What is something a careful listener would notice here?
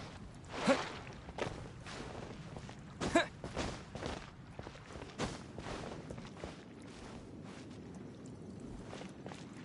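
Footsteps patter quickly over grass and stone.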